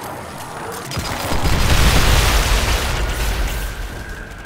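A loud energy blast roars and crackles.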